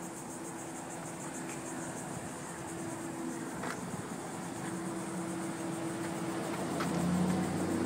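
Footsteps walk slowly on pavement outdoors.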